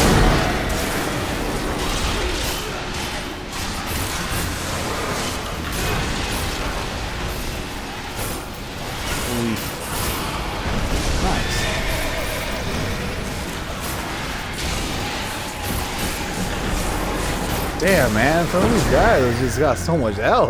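Magic spells crackle and blast during a fast fight.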